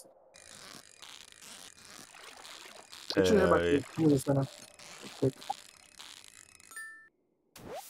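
A fishing reel clicks and whirs as a line is pulled in.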